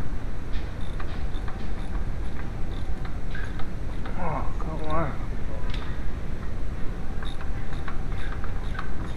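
Metal parts click and clink under hands close by.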